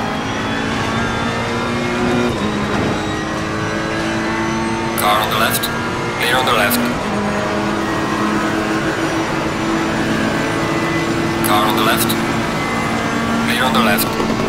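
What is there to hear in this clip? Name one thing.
A racing car engine drones steadily at high revs, dropping in pitch as it shifts gears.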